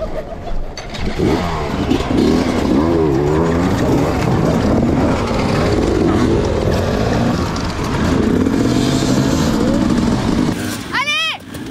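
Many dirt bike engines rev loudly together.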